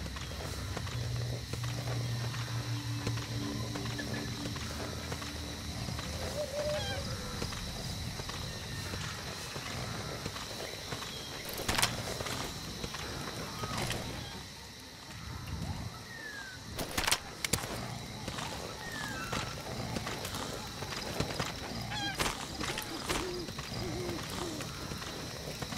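Footsteps shuffle softly over dry grass and dirt.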